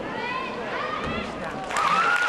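A gymnast lands with a thud on a mat.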